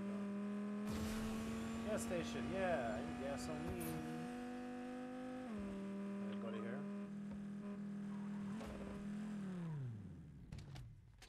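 A car engine hums steadily, then winds down and stops.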